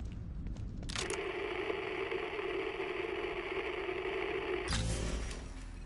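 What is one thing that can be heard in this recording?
A handheld radio hisses and crackles with static.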